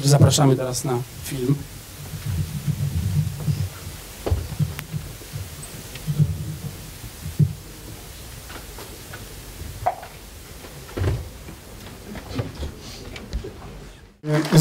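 An older man speaks into a microphone over loudspeakers.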